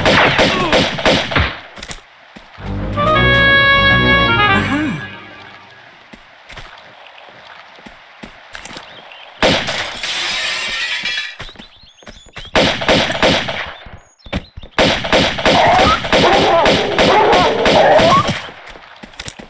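Pistol shots ring out in quick bursts in an echoing hall.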